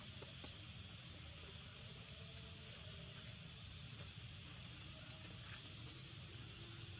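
Small monkey feet patter softly on stone.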